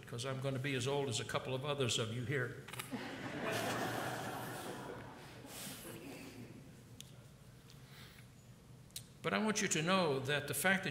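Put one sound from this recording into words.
An elderly man speaks slowly into a microphone, his voice wavering.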